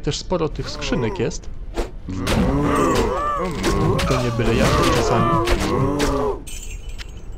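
Monsters growl and roar in a fight.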